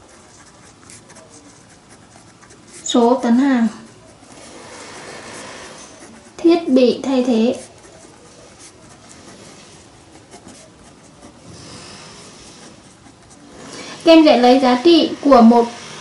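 A marker pen squeaks and scratches softly on paper.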